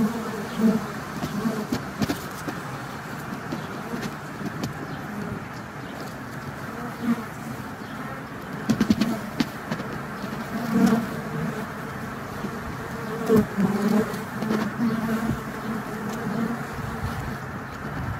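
Bees buzz steadily, close by.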